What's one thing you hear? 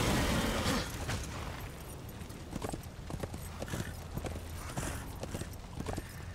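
Heavy footsteps thud on hard ground.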